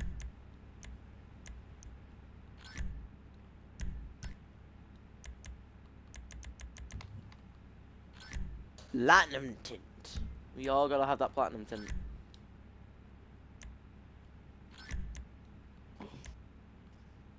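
Game menu sounds click and beep as selections are made.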